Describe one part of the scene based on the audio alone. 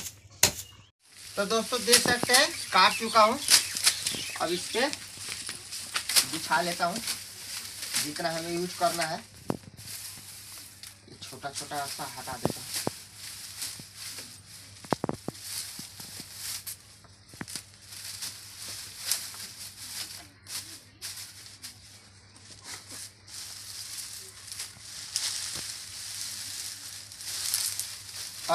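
Dry twigs rustle and crackle as they are handled.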